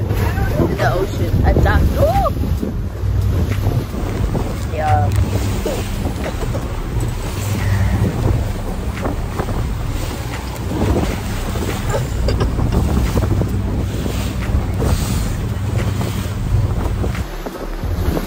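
Wind buffets a phone microphone with a low steady rumble.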